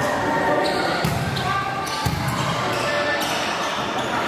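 A volleyball is struck hard with a hand, echoing in a large hall.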